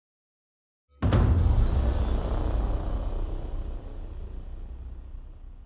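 A bright whooshing chime swells up and slowly fades.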